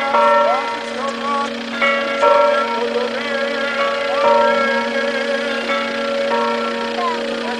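A man chants a prayer in a steady singing voice.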